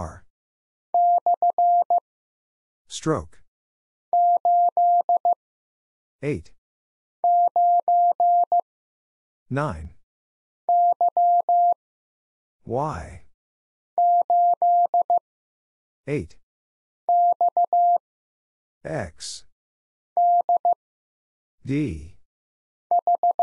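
A Morse code key sends out short, steady beeps in quick bursts.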